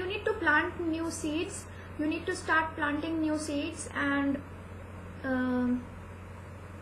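A young woman speaks calmly and close to the microphone.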